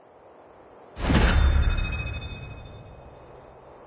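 A bright electronic chime rings out and fades.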